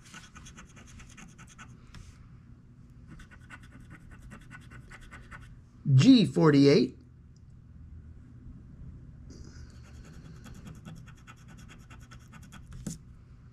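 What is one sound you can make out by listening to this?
A pin scratches quickly across a card in short bursts.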